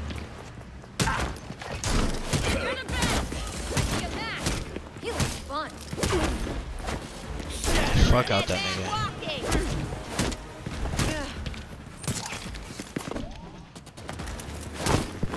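Punches and kicks thud in a fast brawl.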